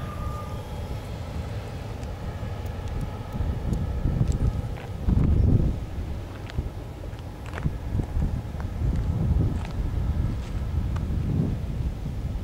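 An EMD GP-series diesel locomotive rumbles as it pulls freight cars past.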